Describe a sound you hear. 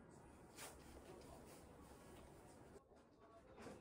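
Paper pages rustle as a book is handled.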